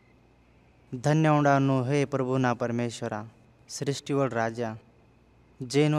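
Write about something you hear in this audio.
A man speaks slowly and solemnly, close by.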